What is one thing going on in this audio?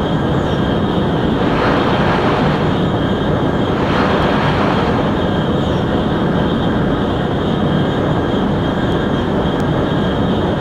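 A high-speed train roars steadily along the tracks.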